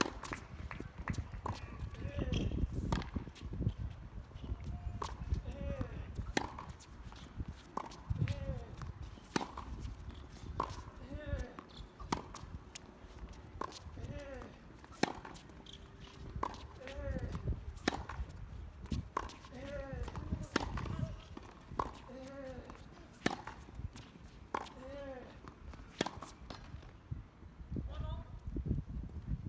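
Tennis balls are struck with sharp pops, back and forth in a steady rally, outdoors.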